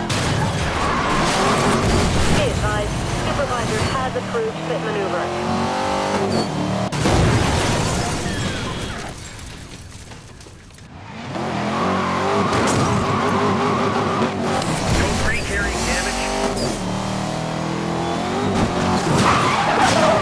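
A sports car engine roars and revs at high speed.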